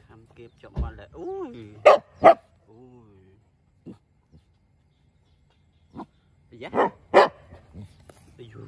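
A dog sniffs close up at the ground.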